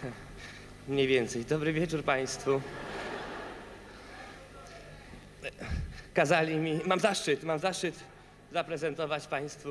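A young man speaks into a microphone over loudspeakers in a large hall.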